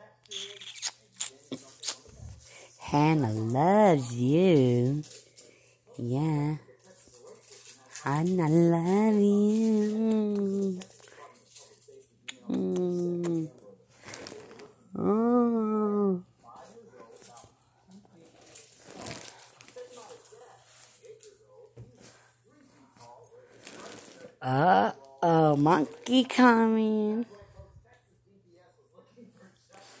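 Soft fabric rustles and brushes as a plush toy is rubbed against a kitten.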